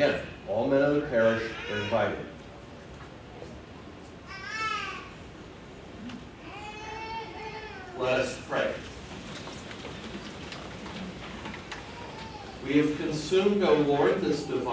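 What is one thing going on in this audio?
An older man chants and speaks aloud nearby.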